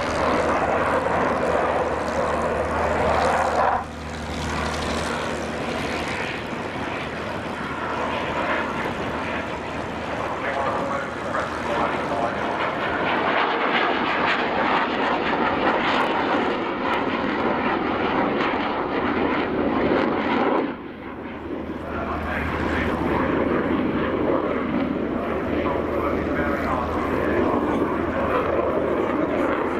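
A jet engine roars loudly overhead, rumbling and booming throughout.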